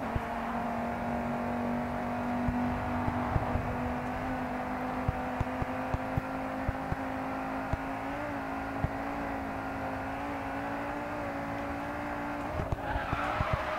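A car engine roars steadily at high speed, its pitch slowly climbing.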